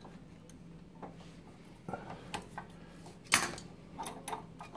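A metal tool clinks against copper pipe fittings.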